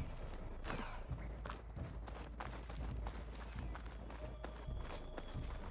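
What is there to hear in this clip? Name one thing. Footsteps crunch and rustle through undergrowth and over dirt.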